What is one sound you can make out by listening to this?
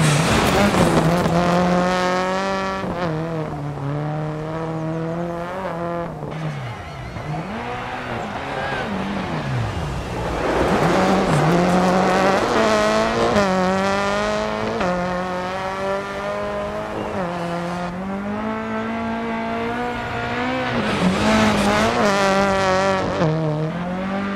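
A rally car engine roars and revs up and down.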